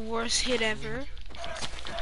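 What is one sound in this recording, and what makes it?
A chicken clucks.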